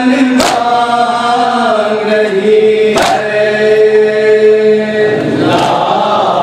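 A young man sings a slow lament loudly through a microphone.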